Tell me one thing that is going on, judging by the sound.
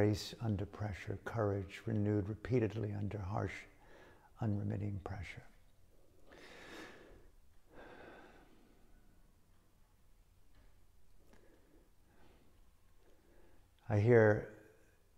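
An older man speaks calmly and close, with pauses.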